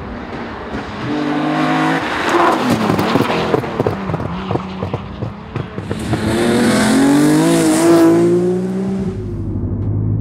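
A classic rally car's straight-six engine revs hard and roars past.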